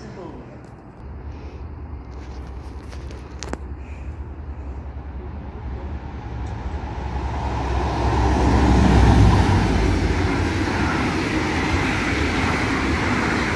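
A subway train rumbles into an echoing station, growing louder to a roar.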